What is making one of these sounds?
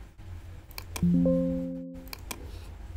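A computer alert chimes once.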